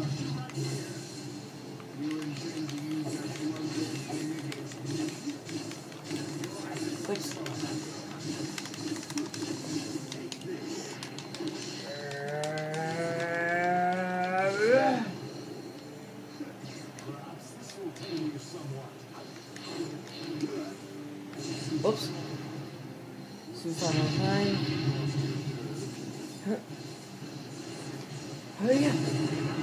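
A video game's battle sounds and blasts play from a television speaker throughout.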